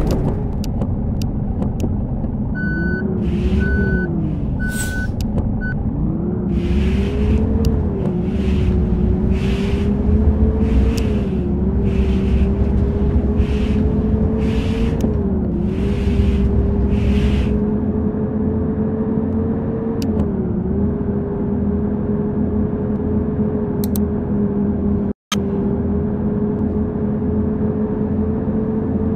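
A bus engine hums steadily, its pitch rising and falling with speed.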